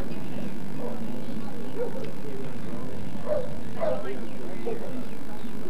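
A crowd of people chatters outdoors in the distance.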